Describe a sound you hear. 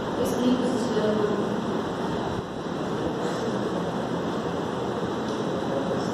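A young woman speaks calmly in a room with a slight echo.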